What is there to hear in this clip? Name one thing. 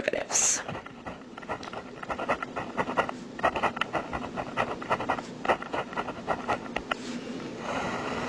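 A pen taps and scratches on a hard surface.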